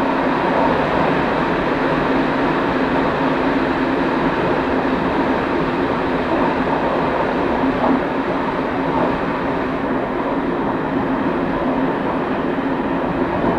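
A train rumbles steadily along the rails, its engine droning.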